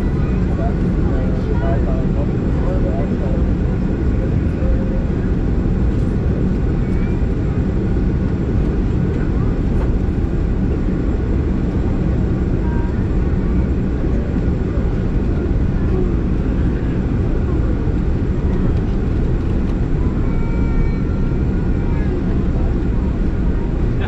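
Jet engines roar steadily from inside a plane's cabin.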